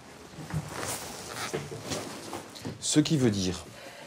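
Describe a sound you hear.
Papers rustle on a desk.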